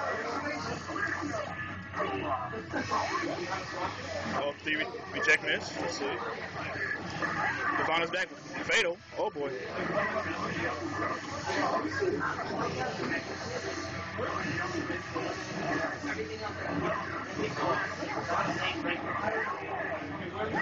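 Upbeat music plays steadily from a television.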